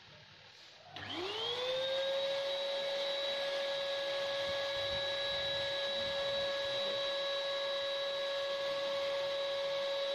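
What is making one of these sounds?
A vacuum cleaner motor switches on, whines up in pitch and then runs with a steady high hum.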